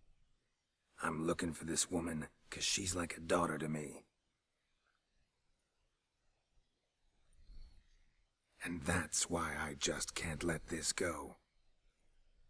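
A man speaks calmly in a low, gravelly voice close by.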